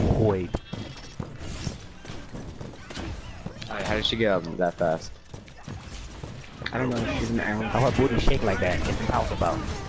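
A weapon fires in quick shots.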